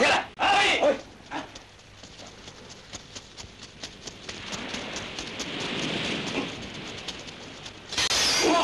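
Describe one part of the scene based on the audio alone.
A group of men run across sand with rapid footsteps.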